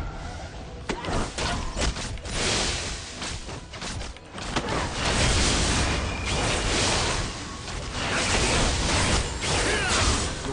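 Game battle sounds clash and crackle with spell effects.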